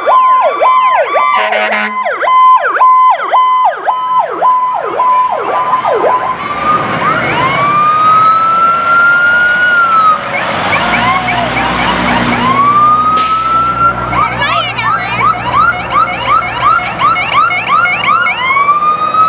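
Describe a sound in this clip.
Fire truck sirens wail and yelp loudly as they pass close by.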